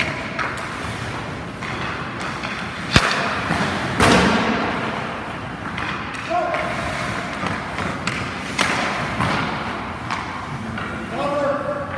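Ice hockey skates scrape and carve across the ice in an echoing rink.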